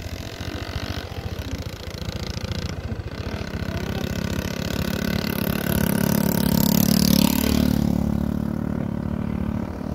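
A motorcycle engine hums as the motorcycle approaches and passes close by.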